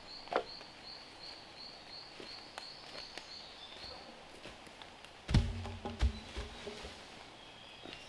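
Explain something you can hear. Footsteps rustle through dry leaves.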